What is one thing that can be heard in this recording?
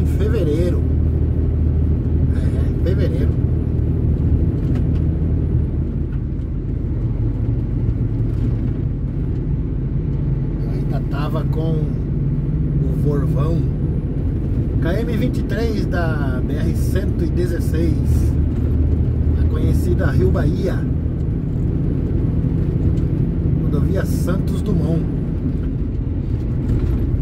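A car engine hums steadily from inside.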